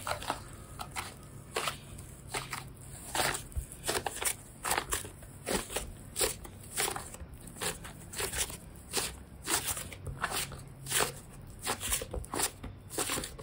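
Soft clay squishes and squelches as hands knead and squeeze it.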